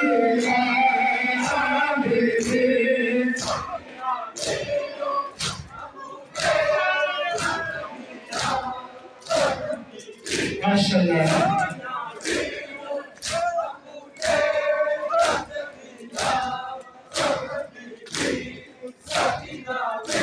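Men beat their chests in a steady rhythm, with loud slaps.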